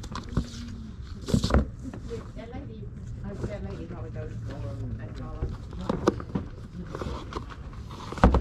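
Hardcover books knock and rub against each other as a hand flips through them in a cardboard box.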